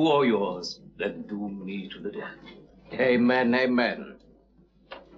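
A man speaks excitedly, close by.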